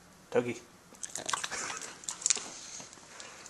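A small dog chews and crunches a treat.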